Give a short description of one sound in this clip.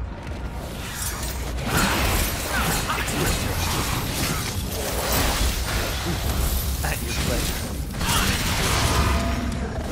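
Sword blows slash and strike repeatedly amid crashing combat noise.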